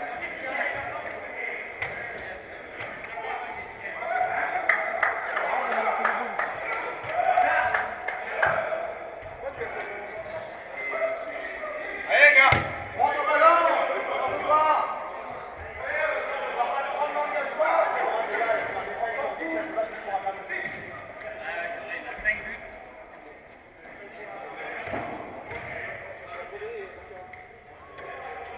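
Young men shout and call out to each other in a large echoing indoor hall.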